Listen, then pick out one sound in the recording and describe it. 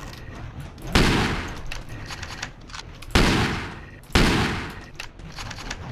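A shotgun fires loud booming blasts that echo and fade.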